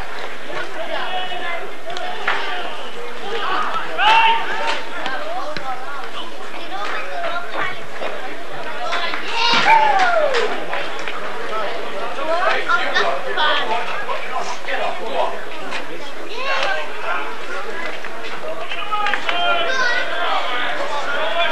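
Men playing rugby shout to each other across an open outdoor pitch.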